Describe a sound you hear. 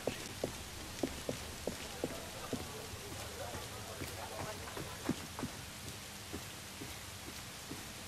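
Footsteps run quickly over stone, then slow to softer steps.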